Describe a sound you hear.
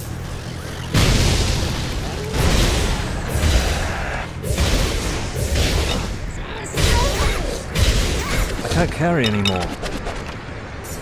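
Magic spells crackle and burst in a game battle.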